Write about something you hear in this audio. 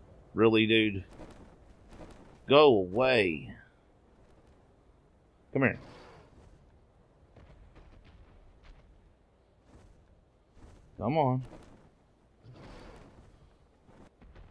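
Large wings beat with heavy flaps.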